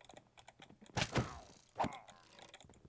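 A sword strikes a creature with a dull thud.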